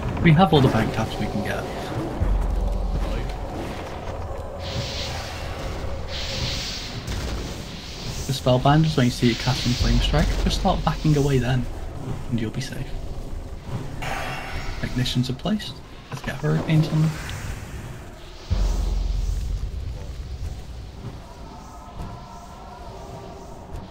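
Magical blasts whoosh and crackle in a fight.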